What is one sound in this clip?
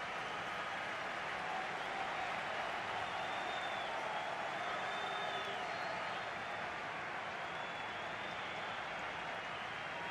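A large crowd roars and cheers steadily in a stadium.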